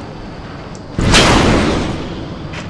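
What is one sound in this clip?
A sudden blast bursts with a crackle.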